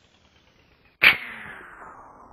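An air rifle fires a single sharp shot.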